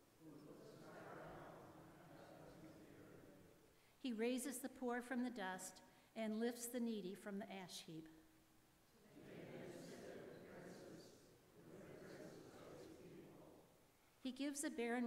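A congregation recites together in unison.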